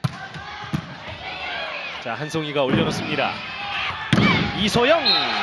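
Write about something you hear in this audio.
A volleyball is struck with sharp slaps in a large echoing hall.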